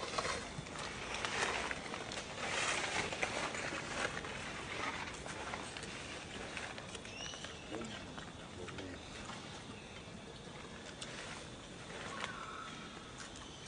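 A monkey crunches and chews on a cucumber up close.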